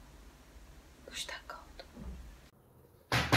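A young woman speaks quietly into a close microphone.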